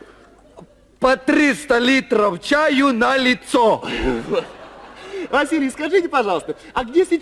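A young man speaks animatedly into a microphone.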